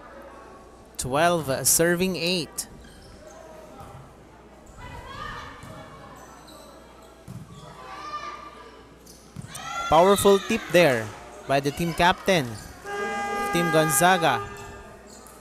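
Young women shout and cheer loudly in an echoing hall.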